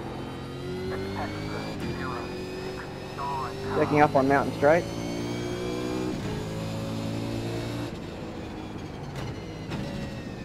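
A racing car engine drones steadily, its pitch shifting as it changes gear.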